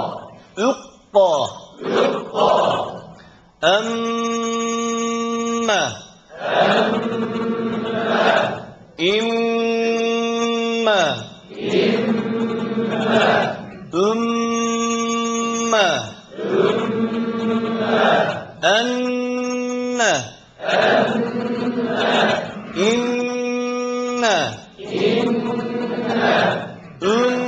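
A man chants in a long, sustained, melodic voice through a microphone.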